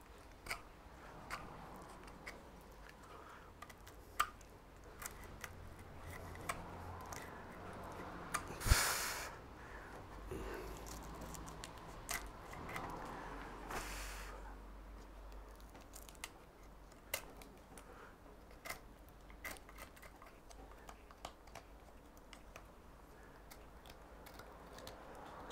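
Pruning shears snip and click against wood.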